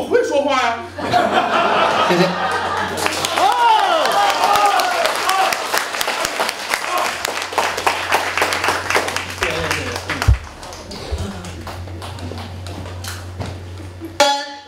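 An audience applauds and cheers in a room.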